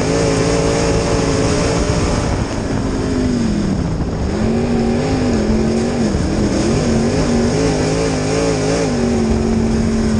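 A race car engine roars loudly up close, its pitch dropping and rising as it slows and speeds up.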